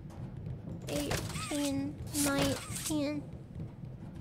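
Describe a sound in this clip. A young woman squeals and talks excitedly into a microphone, close by.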